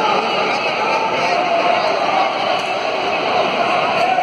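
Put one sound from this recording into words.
Boxing gloves thud against each other in quick blows.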